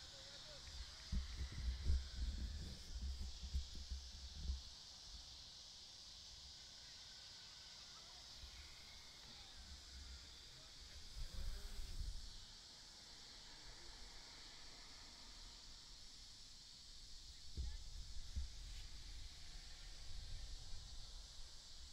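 Wind rumbles against a microphone outdoors in gusts.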